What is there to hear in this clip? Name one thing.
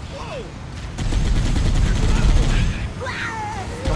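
A vehicle-mounted machine gun fires rapid bursts.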